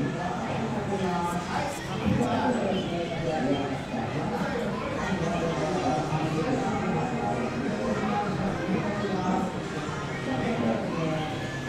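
Upbeat music plays loudly over loudspeakers in a room.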